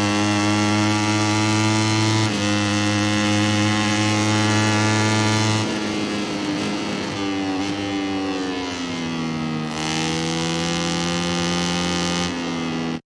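A motorcycle engine screams at high revs, shifts gear, then drops in pitch as it slows into a turn and revs up again.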